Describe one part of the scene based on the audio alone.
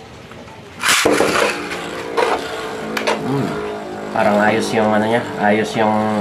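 A spinning top whirs and rattles around a plastic arena.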